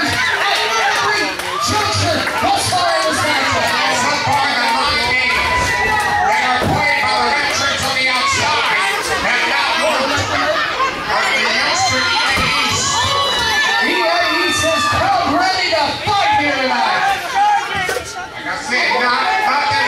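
Wrestlers thud onto a ring mat.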